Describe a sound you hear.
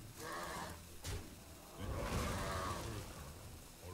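A magical blast crashes and whooshes.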